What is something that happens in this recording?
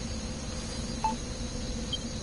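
A short electronic blip sounds as a menu selection moves.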